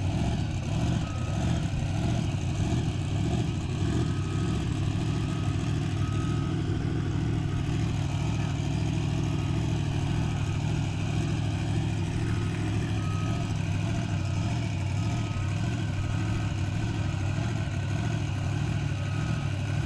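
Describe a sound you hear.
A truck's warning alarm beeps over and over.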